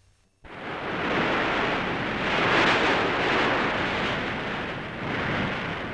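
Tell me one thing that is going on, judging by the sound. Waves crash against rocks.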